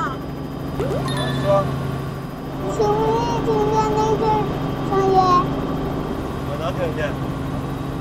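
A young man speaks through a headset intercom.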